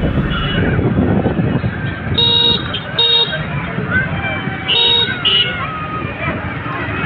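Motorcycles and cars hum and rumble along a busy street.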